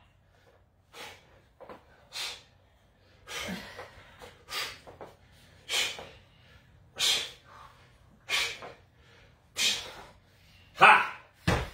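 A woman exhales forcefully in short, rhythmic breaths.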